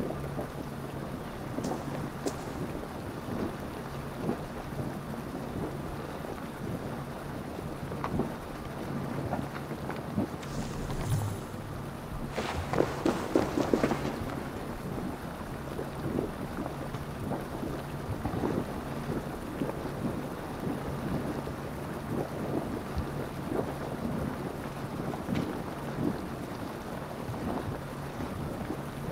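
Fire crackles and pops steadily close by.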